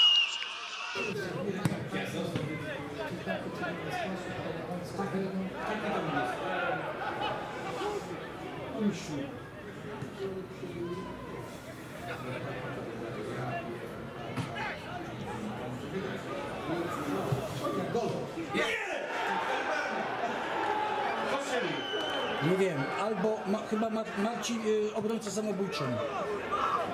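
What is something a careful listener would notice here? A small crowd murmurs and calls out in an open stadium.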